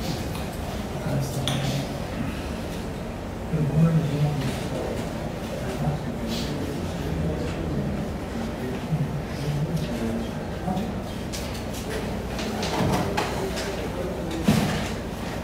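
A man reads aloud steadily through a microphone in a room with some echo.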